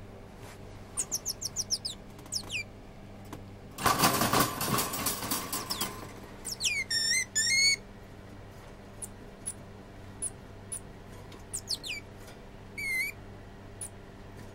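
A small monkey chirps and squeaks in high, sharp calls.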